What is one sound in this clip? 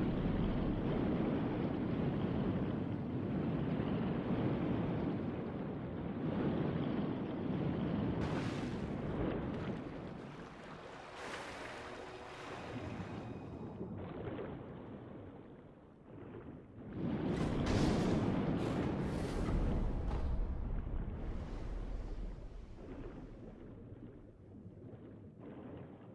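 Water bubbles and churns underwater.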